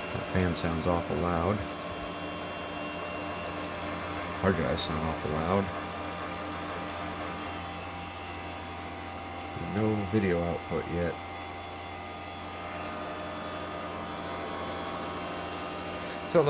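A computer fan hums steadily.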